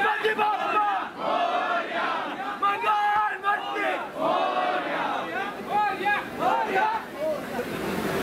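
A man speaks loudly and with animation close by.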